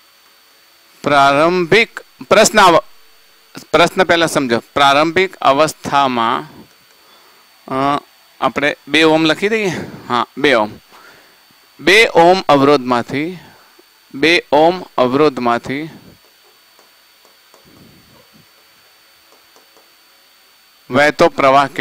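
A man explains steadily, close to a microphone, pausing now and then.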